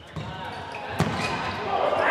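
A ball is kicked with a sharp thud in an echoing indoor hall.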